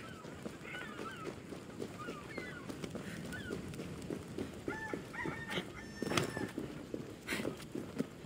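Footsteps run over dirt.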